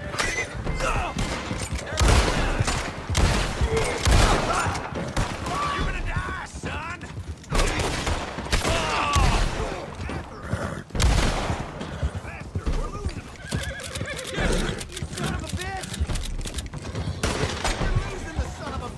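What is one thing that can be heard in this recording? Horse hooves pound on the ground at a gallop.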